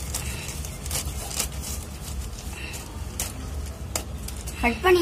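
Scissors snip through a plastic mailing bag.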